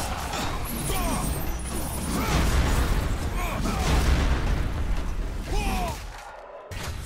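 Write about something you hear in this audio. Heavy blows thud and crash over and over.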